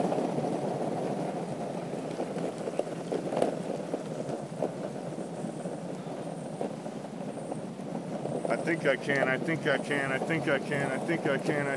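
Skateboard wheels rumble steadily over rough asphalt.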